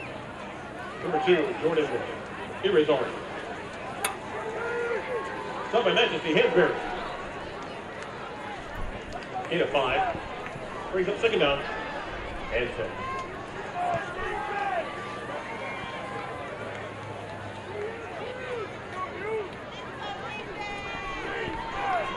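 A crowd murmurs faintly in the stands outdoors.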